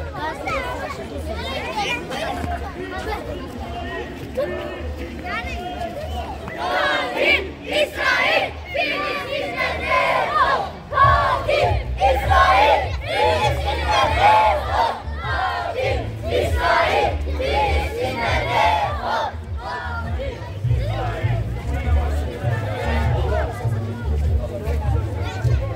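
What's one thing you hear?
A large crowd of men, women and children chants and shouts outdoors.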